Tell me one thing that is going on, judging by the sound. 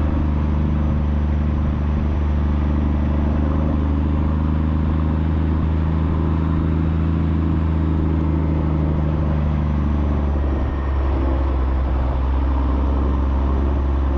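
A tractor engine chugs loudly and steadily up close.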